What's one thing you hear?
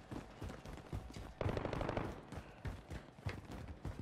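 Footsteps thud quickly on hard ground.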